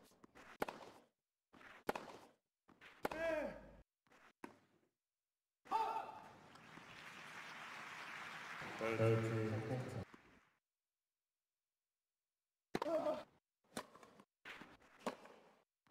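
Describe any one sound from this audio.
A tennis ball is struck hard with a racket, back and forth.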